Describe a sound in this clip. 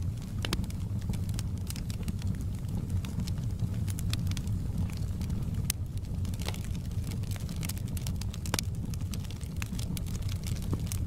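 A wood fire crackles and pops with sharp snaps.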